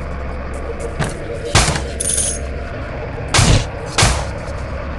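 Gunshots fire in short, sharp bursts.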